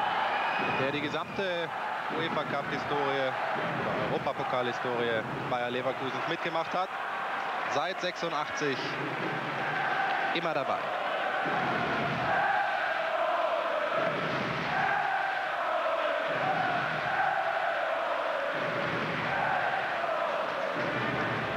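A large stadium crowd chants steadily in the distance.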